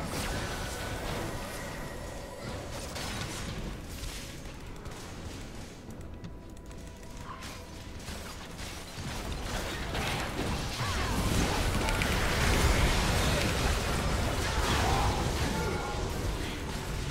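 Video game battle effects clash and burst, growing louder toward the end.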